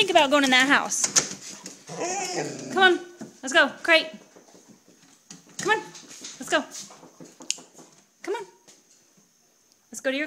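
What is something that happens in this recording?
A dog yowls and whines close by in long, wavering cries.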